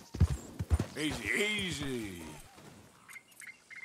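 A horse whinnies.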